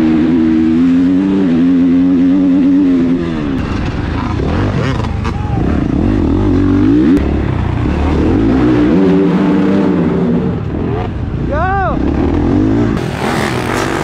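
A dirt bike engine revs loudly, rising and falling in pitch.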